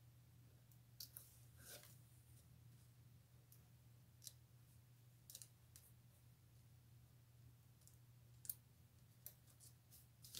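Small clicks and taps sound as a punch tool presses into paper.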